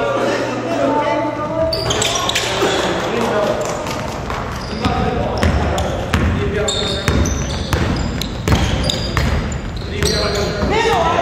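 Sneakers squeak sharply on a hard floor in a large echoing hall.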